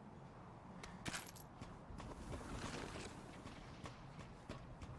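Footsteps clang on a metal grate floor.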